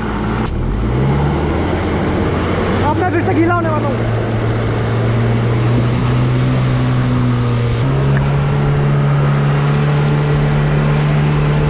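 A small engine hums steadily and shifts pitch.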